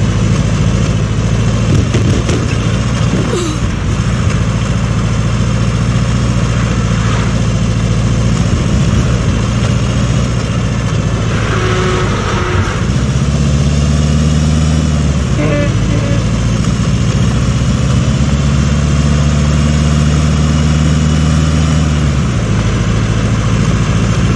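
A truck engine rumbles steadily as it drives.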